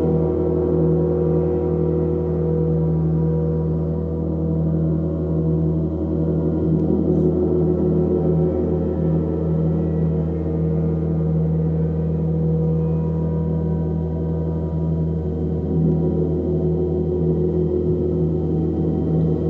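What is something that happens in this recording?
A large gong hums and swells with a deep, steady, shimmering drone.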